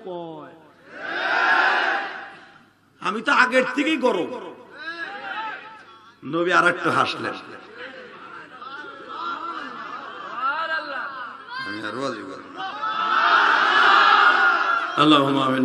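A man preaches into a microphone in a loud, sing-song, impassioned voice, heard through loudspeakers with some echo.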